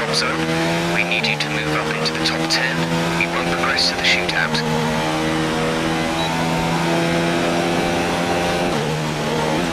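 A racing car engine screams at high revs and shifts up through the gears.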